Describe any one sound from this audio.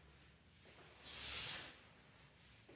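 An eraser rubs across a whiteboard.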